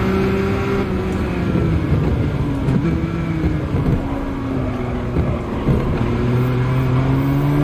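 A racing car engine drones loudly, dropping in pitch as the car slows, then rising again.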